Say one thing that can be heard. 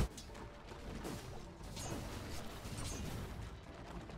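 Weapons clash in a game battle.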